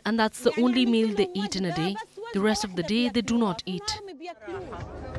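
A woman speaks with emotion close to the microphone.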